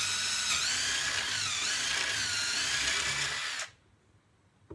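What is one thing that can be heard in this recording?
A cordless drill whines loudly as it drives into wood.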